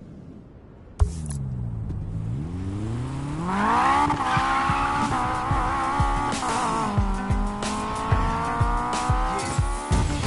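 A car engine revs and roars as the car pulls away and speeds up.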